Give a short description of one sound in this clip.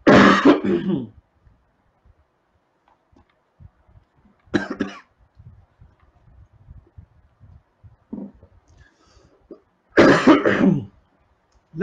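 A man coughs hard, close by.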